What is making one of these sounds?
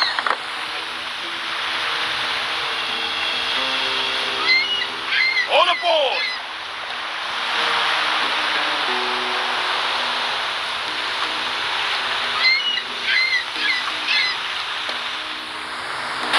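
Sea waves wash steadily around a sailing ship.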